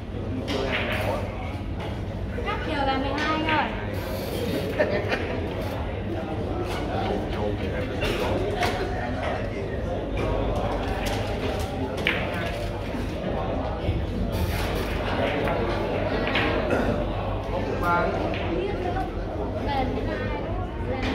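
Men chat in the background of a large room.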